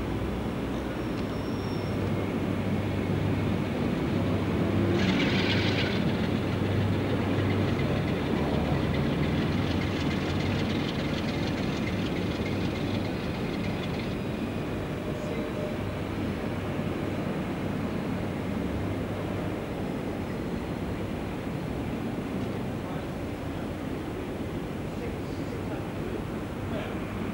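A diesel locomotive engine rumbles low and steady nearby.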